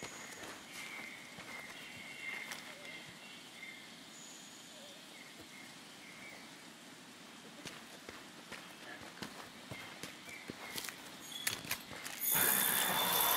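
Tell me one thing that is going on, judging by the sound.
Footsteps crunch on the forest floor.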